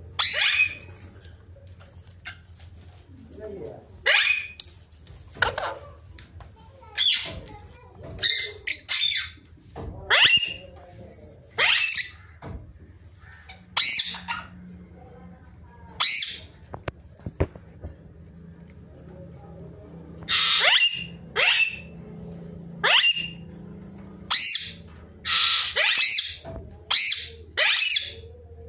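A parrot screeches loudly and shrilly, again and again, close by.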